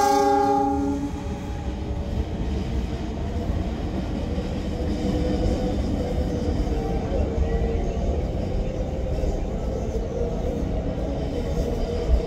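A diesel locomotive engine hums steadily as the train approaches slowly.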